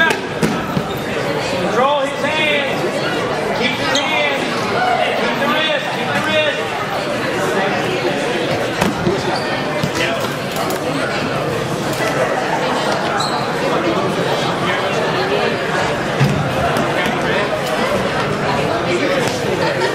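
Wrestlers' bodies thud and shuffle on a mat.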